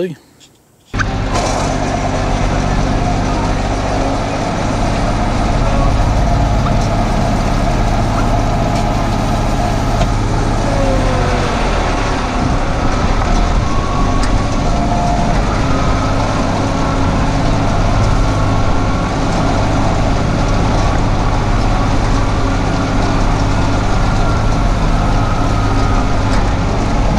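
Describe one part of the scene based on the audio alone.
A spreader whirs as it scatters seed.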